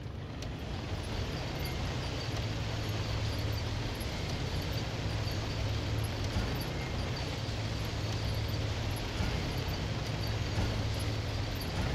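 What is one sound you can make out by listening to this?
A heavy engine rumbles steadily.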